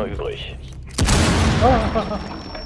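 A wall bursts apart with a loud blast and falling debris.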